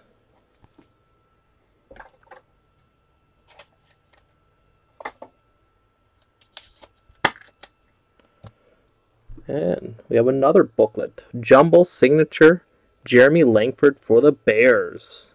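Cards rustle and tap softly as hands handle them.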